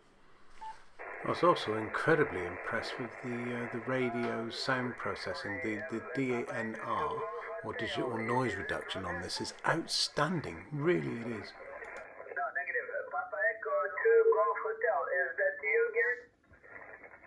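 A man speaks over a radio loudspeaker.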